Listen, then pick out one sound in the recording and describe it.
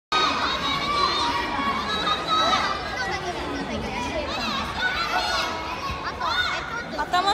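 Children and young people cheer and shout close by.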